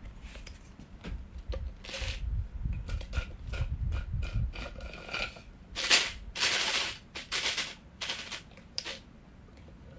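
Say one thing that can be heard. A young woman sips a drink loudly through a straw.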